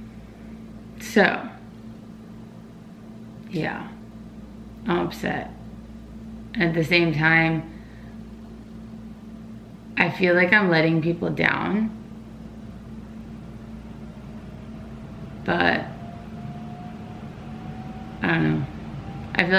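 A young woman speaks close by in short, sighing bursts.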